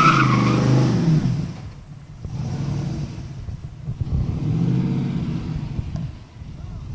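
A truck's engine rumbles and revs as the truck rolls slowly by.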